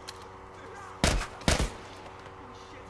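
Gunshots ring out twice, loud and close.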